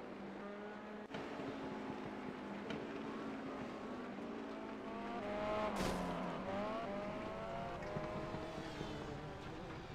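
A racing car engine whines loudly, rising in pitch and dropping with each gear change.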